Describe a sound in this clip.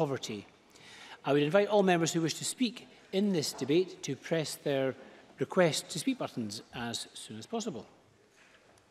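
A man speaks calmly into a microphone in a large room.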